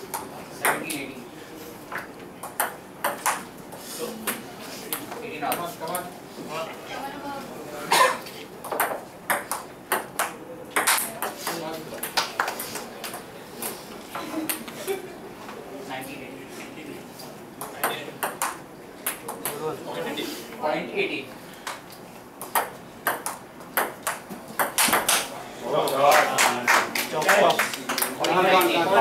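A crowd of men murmurs and talks nearby, indoors.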